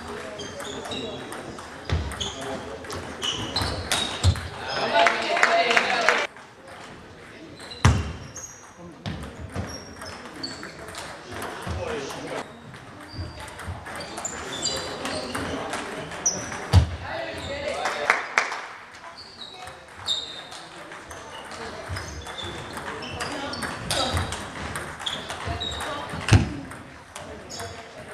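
A ping-pong ball clicks back and forth off paddles and a table in a large echoing hall.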